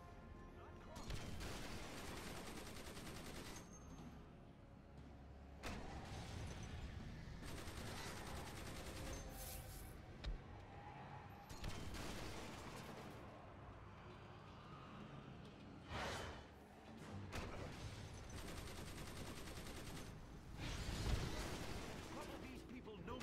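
Energy blasts and explosions burst again and again during a fight.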